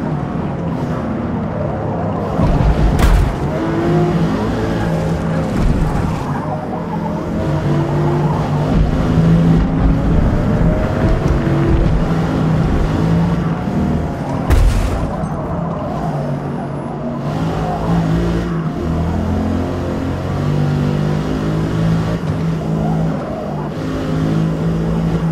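A car engine roars and revs up and down as it races.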